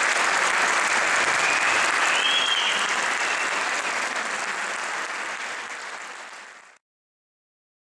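An audience applauds loudly in a large hall, then the clapping fades out.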